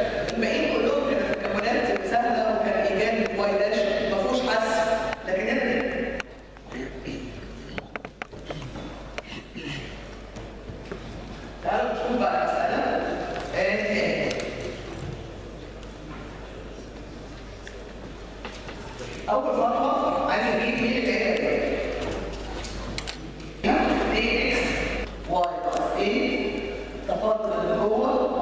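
A middle-aged woman lectures calmly through a microphone in an echoing room.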